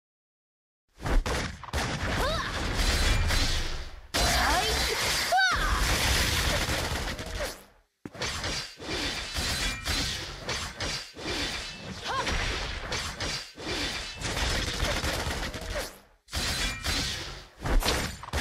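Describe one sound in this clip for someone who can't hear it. Sword strikes and magic blasts crash in a fast fight.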